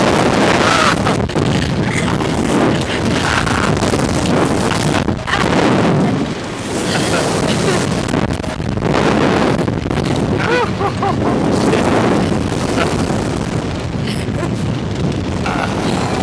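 A young woman screams.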